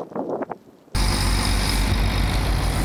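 A boat's outboard motor roars loudly, close by.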